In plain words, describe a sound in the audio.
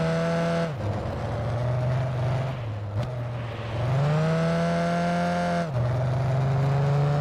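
A video game race car engine roars, dropping in pitch at each gear change and climbing again.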